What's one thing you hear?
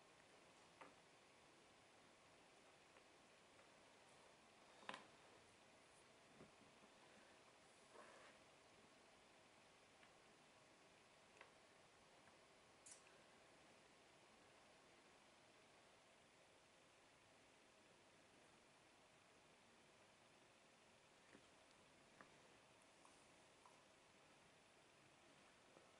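Jigsaw puzzle pieces click and tap softly on a board now and then.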